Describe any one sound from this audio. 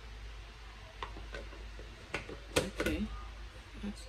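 A plastic lid clicks onto a blender jar.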